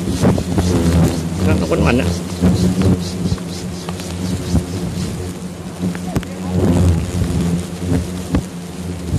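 Hornets buzz loudly and angrily close by.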